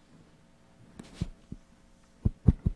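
A microphone thumps loudly as a man handles it close up.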